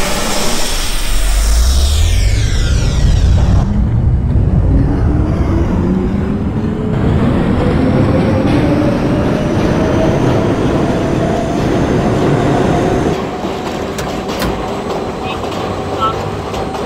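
A subway train's electric motors whine, rising steadily in pitch as the train speeds up.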